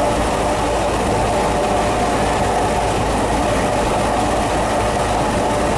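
A freight train rumbles and clatters loudly past at close range.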